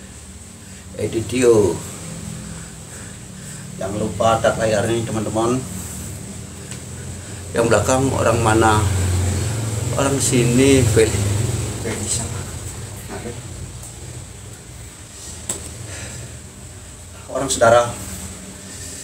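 A middle-aged man talks casually close to a phone microphone, in short bursts.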